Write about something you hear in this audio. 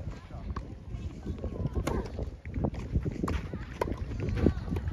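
A tennis racket hits a soft ball with a sharp pop.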